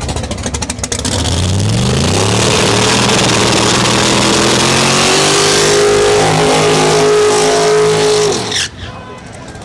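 Tyres screech and squeal as they spin against the track.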